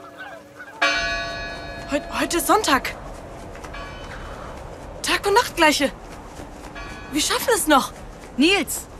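A young man calls out loudly, close by.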